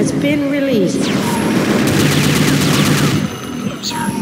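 Gunfire rattles from a rifle.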